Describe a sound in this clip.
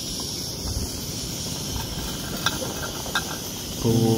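A metal lid clinks against a pot.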